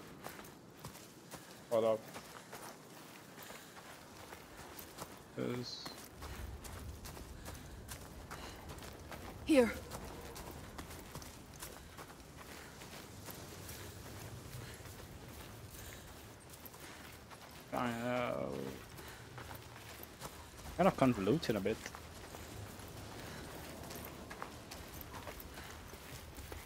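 Footsteps crunch softly on a forest path.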